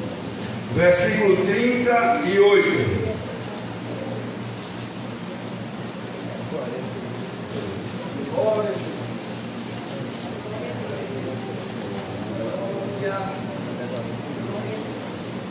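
A man speaks steadily through a microphone and loudspeakers in an echoing room.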